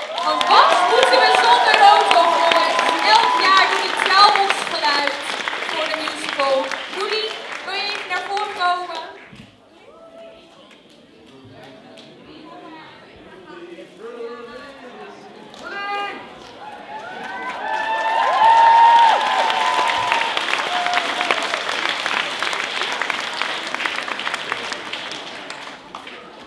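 An audience cheers and whistles loudly in a large hall.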